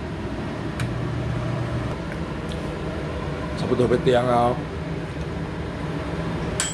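A microwave oven hums steadily as it runs.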